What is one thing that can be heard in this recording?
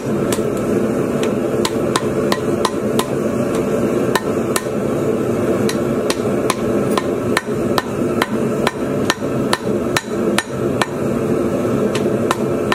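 A hammer strikes hot metal on an anvil in a steady rhythm.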